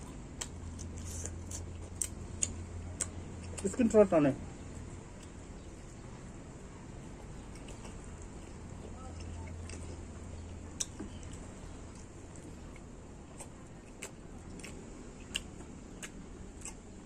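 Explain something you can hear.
A man chews food noisily with soft smacking sounds.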